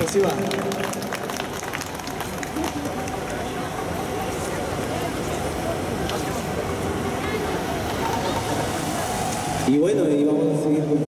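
Pan flute music plays through loudspeakers outdoors.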